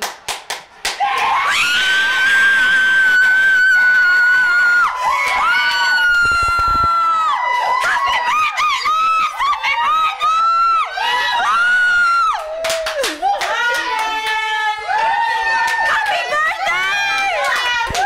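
A woman screams and cheers loudly with excitement nearby.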